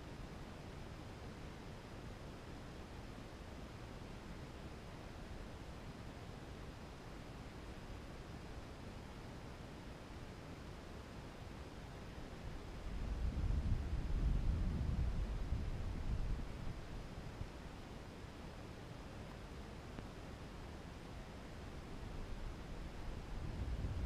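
Wind rumbles softly and steadily, gusting louder for a few seconds midway.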